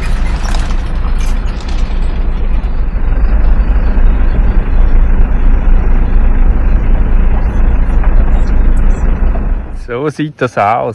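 A car engine rumbles steadily from inside the vehicle.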